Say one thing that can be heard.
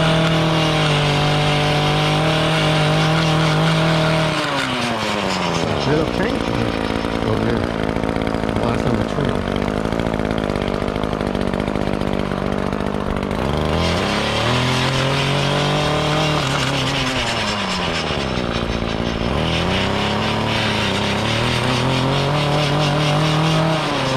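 A trimmer line whips and scrapes along a concrete edge.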